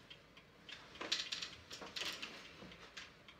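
A wooden chair scrapes on the floor.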